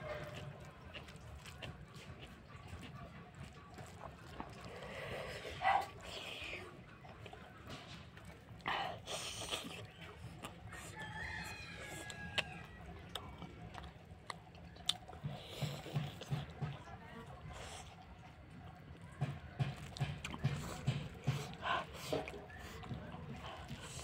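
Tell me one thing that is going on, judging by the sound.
Fingers squish and mix soft rice.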